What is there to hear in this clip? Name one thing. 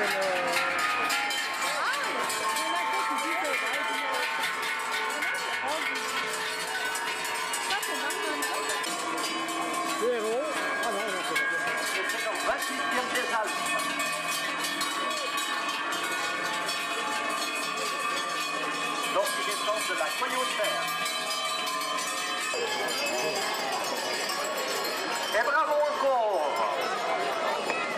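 Hooves clop on a paved road.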